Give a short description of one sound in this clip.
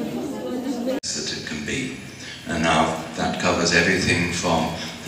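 An elderly man speaks calmly through a microphone in a large echoing hall.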